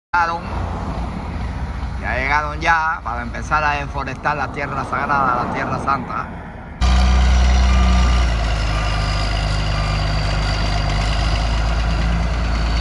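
A wheel loader's diesel engine rumbles and idles nearby.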